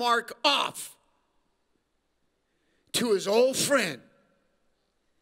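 A man speaks with animation into a microphone over a loudspeaker.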